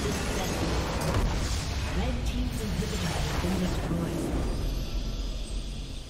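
A crystal structure shatters with a loud magical explosion.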